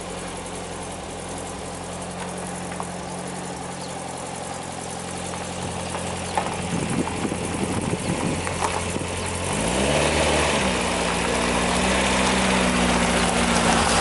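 Tyres crunch slowly over gravel.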